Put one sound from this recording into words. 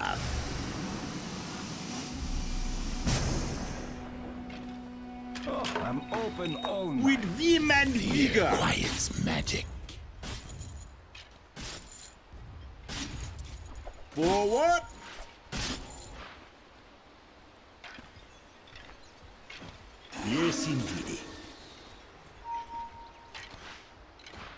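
Game spell and hit sound effects crackle and whoosh in short bursts.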